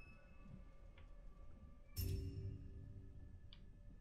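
An electronic chime rings out as a puzzle is solved.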